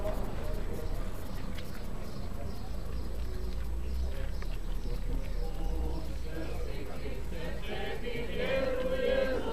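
A crowd of adults murmurs and talks outdoors.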